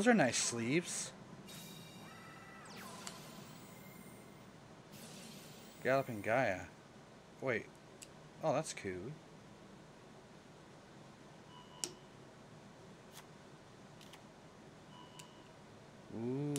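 Electronic whooshes and chimes play as cards are revealed in a game.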